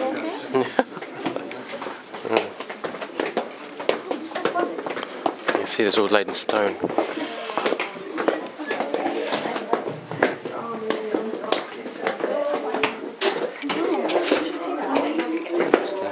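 A crowd of adults chatters close by in an echoing space.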